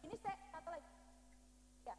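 A young woman speaks briefly over a loudspeaker.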